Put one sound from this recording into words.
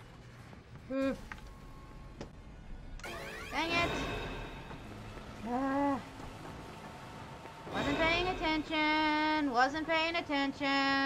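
A young woman talks and exclaims into a microphone with animation.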